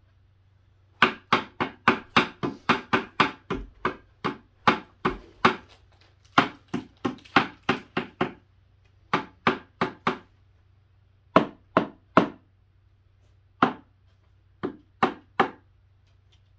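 A man knocks rapidly on wood with a hammer.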